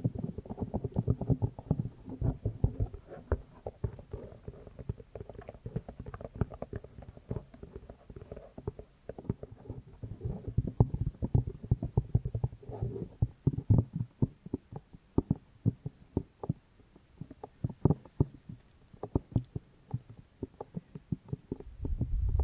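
Fingertips tap and scratch on microphone ear covers close up.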